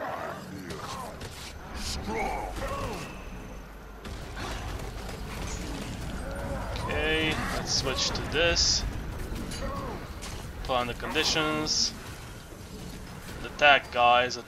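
Weapons strike with sharp hits.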